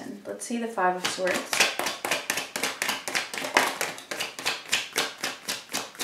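Cards are shuffled in the hands with quick, rapid flicking.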